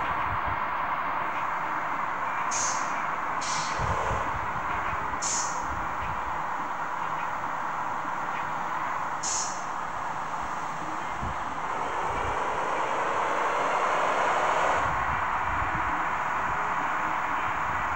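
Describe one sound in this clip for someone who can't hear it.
A truck engine hums steadily as it drives along a road.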